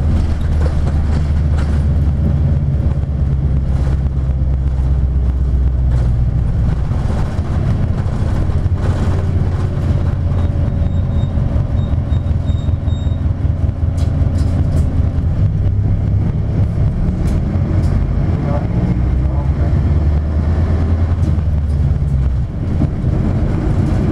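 A vehicle's engine hums low and steady from inside the cabin.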